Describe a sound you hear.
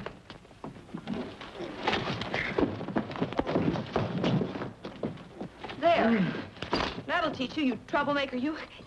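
A woman cries out in distress.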